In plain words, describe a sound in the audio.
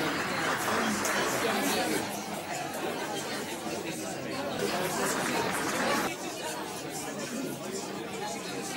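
A crowd of people chatters in a large echoing room.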